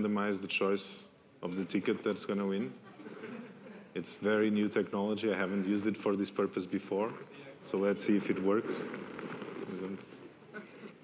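A man speaks into a microphone, heard through loudspeakers in a large room.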